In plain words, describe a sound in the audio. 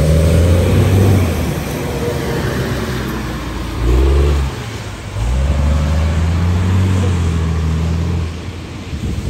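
A bus engine rumbles and whines as the bus pulls away.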